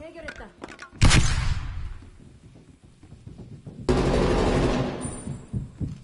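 Rifle shots ring out with a ringing echo.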